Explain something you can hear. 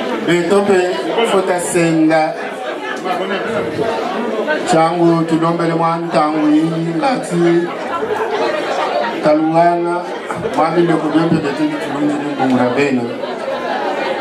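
A man sings loudly into a microphone, heard through loudspeakers in a room.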